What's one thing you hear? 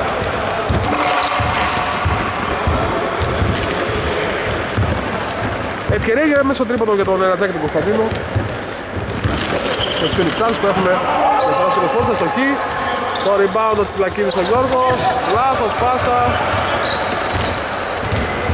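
Men shout and call out to each other during play.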